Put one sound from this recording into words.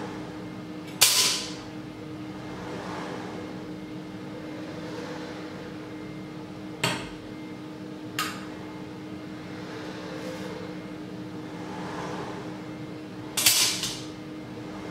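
Metal tools clink as they drop into a metal cup.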